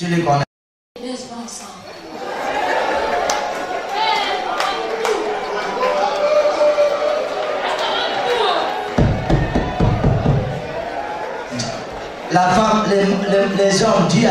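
A crowd of people shout and cry out in an echoing hall.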